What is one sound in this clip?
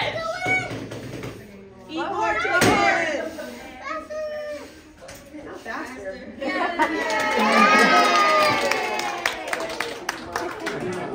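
Young girls chatter and shout excitedly close by.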